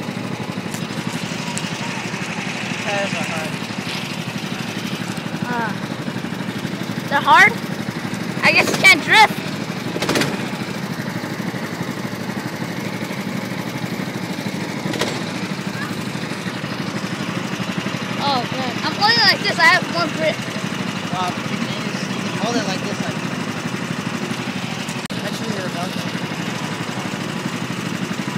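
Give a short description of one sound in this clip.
A small petrol engine idles with a steady rattling hum nearby.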